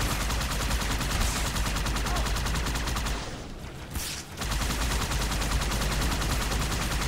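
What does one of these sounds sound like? A hovering vehicle hums with a steady engine drone.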